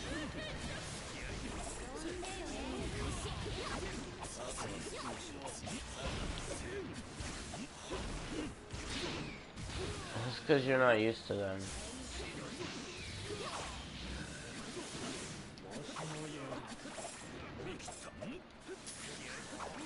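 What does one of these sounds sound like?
Blows and energy blasts crash and whoosh in quick succession.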